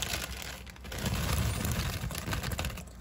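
Marshmallows tumble softly into a bowl.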